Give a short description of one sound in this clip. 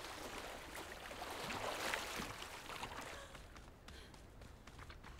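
Footsteps splash through shallow water and then thud on the ground.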